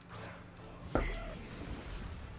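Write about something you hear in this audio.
A sparkling chime sounds as a creature bursts onto the field.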